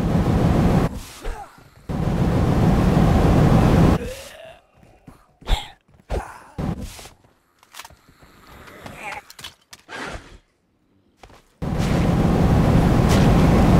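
Explosions boom and rumble in bursts.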